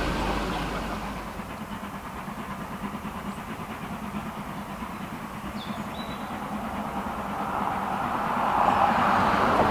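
Wind rustles tree leaves outdoors.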